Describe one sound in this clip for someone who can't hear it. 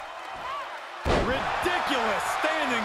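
A body slams down onto a ring mat with a heavy thud.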